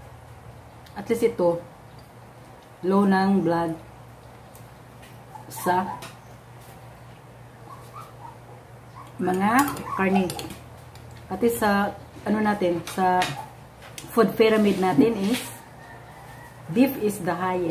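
A woman speaks calmly close by, with pauses.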